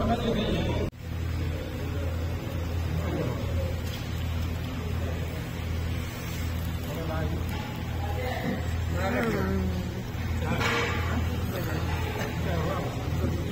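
Men talk quietly nearby.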